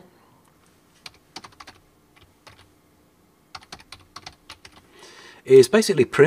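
Keyboard keys click in quick bursts.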